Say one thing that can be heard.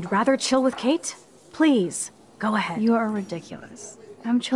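A young woman speaks casually, close up.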